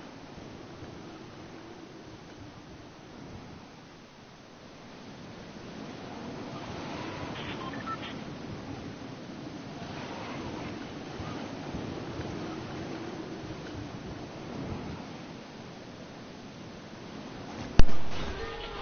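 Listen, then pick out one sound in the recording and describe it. Wind rushes steadily past during a glide through the air.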